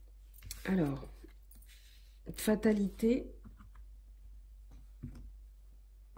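A card is laid down softly on a cloth.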